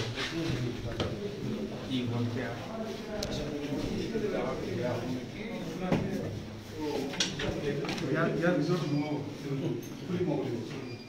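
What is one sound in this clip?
Several men talk close by as they walk.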